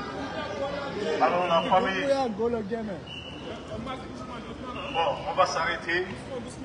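A man shouts through a megaphone.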